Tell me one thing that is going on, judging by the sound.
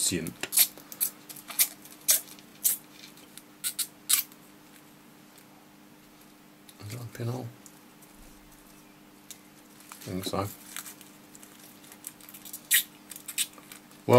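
Fingers handle a thin strip of metal, making small clicks and crinkles.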